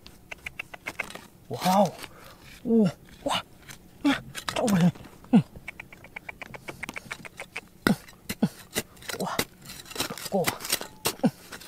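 A small trowel scrapes and digs into dry, stony soil.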